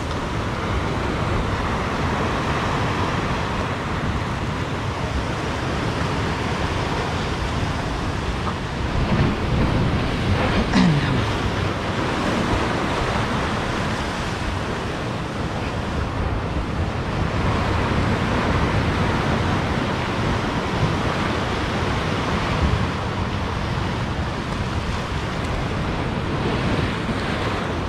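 Waves crash and churn against rocks close by.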